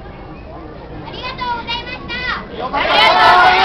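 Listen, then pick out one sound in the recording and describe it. A group of young women and girls shout together loudly.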